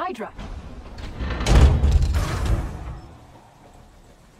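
A heavy metal vault door rumbles and grinds open.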